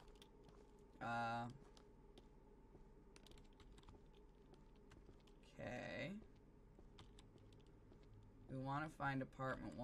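A young woman speaks in short bursts close to a microphone.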